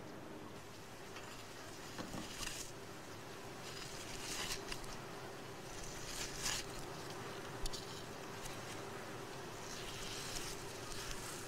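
A knife scrapes and digs into damp soil.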